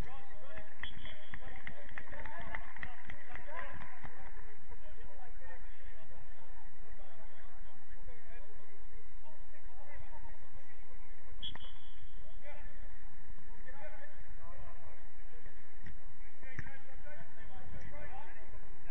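Young men shout to each other across an outdoor pitch.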